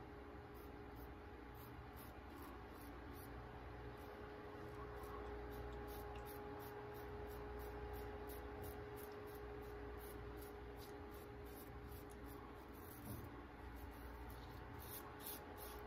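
A razor scrapes softly across a stubbly face.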